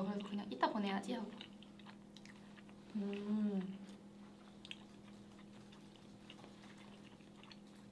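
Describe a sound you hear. A young woman slurps and chews food.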